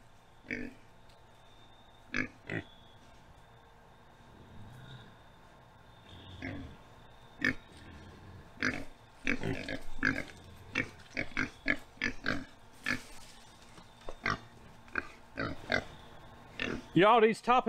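Pigs snuffle and grunt.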